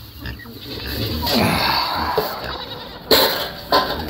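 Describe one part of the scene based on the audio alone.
Grain pours into a metal bucket with a hissing rattle.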